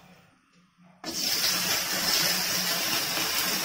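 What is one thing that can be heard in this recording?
Food sizzles loudly as it drops into a hot pan.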